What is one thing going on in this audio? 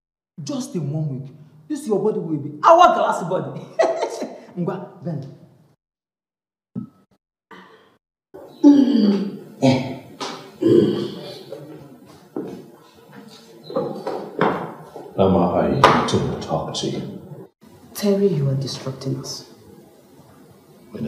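A woman speaks.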